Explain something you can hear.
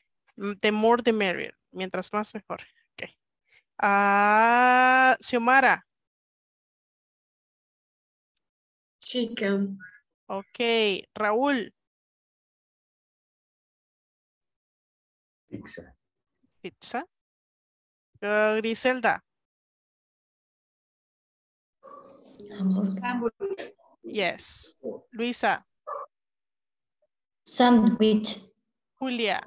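A woman speaks through an online call, saying words in short bursts with pauses between them.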